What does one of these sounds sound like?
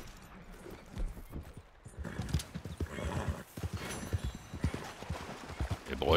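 A horse's hooves thud at a gallop on soft ground.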